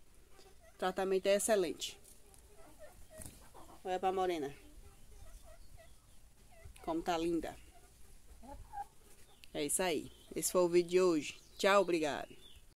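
A hen clucks and cackles loudly close by.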